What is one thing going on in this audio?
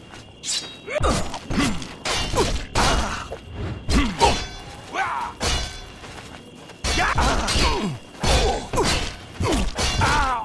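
Metal weapons clash and thud in a fight.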